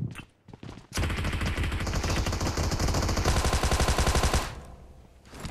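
An automatic rifle fires in a rapid, sustained burst.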